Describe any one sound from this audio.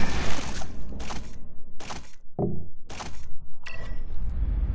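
Short clicks sound as a game menu is scrolled through.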